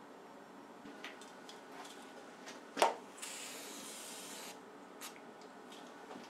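Small metal clicks and taps sound nearby.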